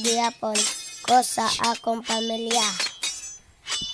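A young boy speaks calmly and close by.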